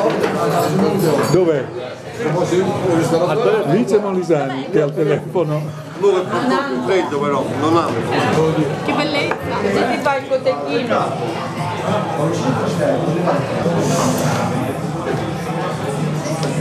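Several men and women talk and chatter close by in a lively group.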